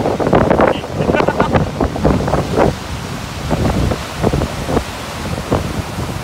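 Waves crash and surge against rocks close by.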